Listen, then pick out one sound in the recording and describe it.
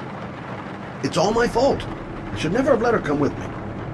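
A middle-aged man speaks quietly and sadly.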